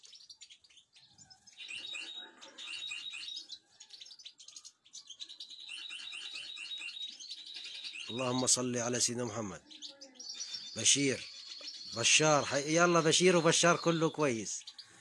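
Small birds twitter and chirp rapidly close by.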